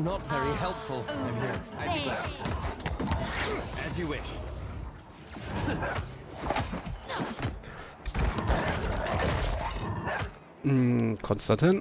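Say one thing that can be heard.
Blades clash and strike in a fierce fight.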